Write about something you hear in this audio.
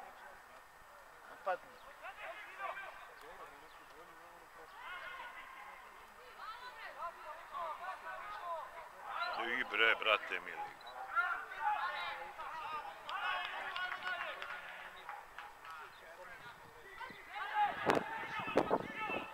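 Young men shout to each other across an open field in the distance.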